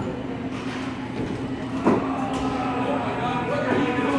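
A ride machine hums steadily.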